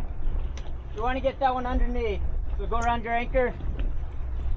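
A man calls out loudly across the water.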